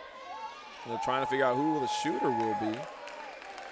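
A referee blows a whistle once.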